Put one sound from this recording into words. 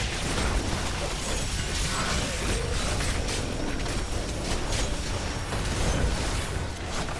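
Spell blasts and explosions crackle and boom rapidly.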